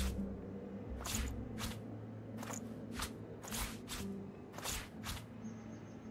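Short soft whooshing interface sounds come in quick bursts as items are handled.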